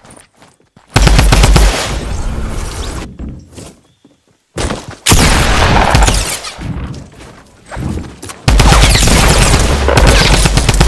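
Gunshots fire in loud, rapid bursts.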